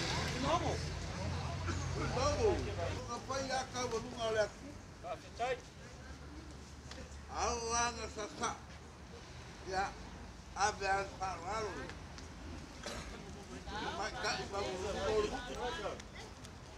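A man calls out loudly in a ringing, drawn-out voice outdoors.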